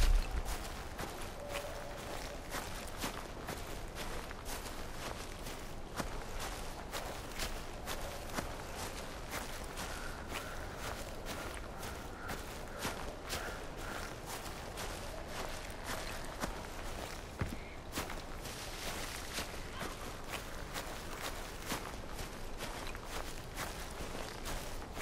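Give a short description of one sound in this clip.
Footsteps rustle steadily through tall grass.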